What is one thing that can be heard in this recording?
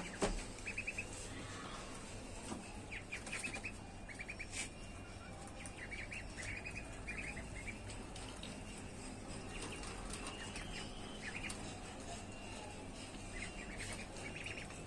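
Many ducklings peep in quick, high bursts close by.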